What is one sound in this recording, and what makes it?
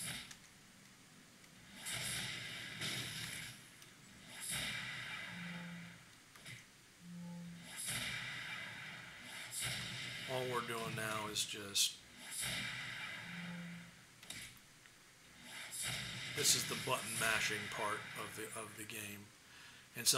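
Game combat effects whoosh and clash.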